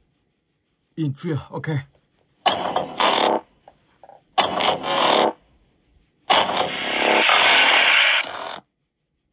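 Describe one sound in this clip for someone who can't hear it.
Short electronic sound effects play in bursts from a tablet's speaker.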